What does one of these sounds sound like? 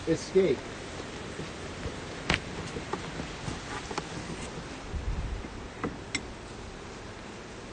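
Outdoors, wind rustles through tall grass.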